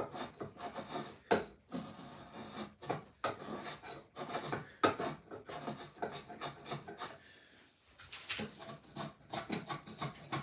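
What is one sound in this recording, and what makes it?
A knife shaves and scrapes wood in short strokes.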